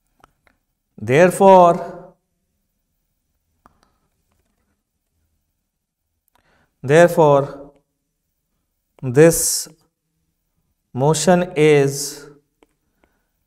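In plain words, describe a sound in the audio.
A man speaks calmly and slowly into a close microphone, in short phrases with pauses.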